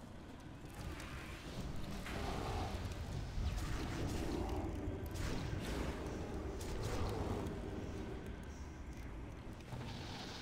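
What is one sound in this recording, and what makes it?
Magic blasts whoosh and crackle in a battle.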